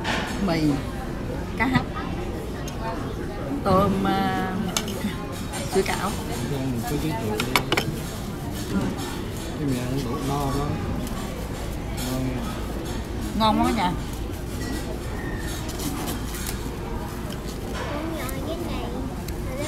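A crowd of diners chatters in a busy room.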